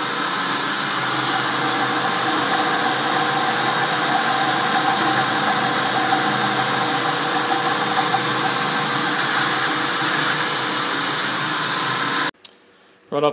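A milling machine whirs loudly as its cutter grinds through metal.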